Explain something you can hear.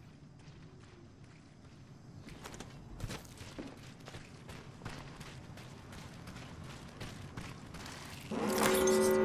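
Footsteps patter quickly over dirt.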